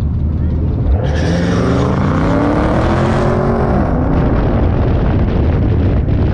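A car engine roars and revs up sharply as the car accelerates hard.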